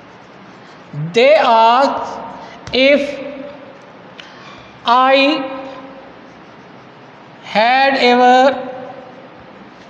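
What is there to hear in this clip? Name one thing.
A man speaks loudly and slowly in a drawn-out, sing-song way, as if reading out.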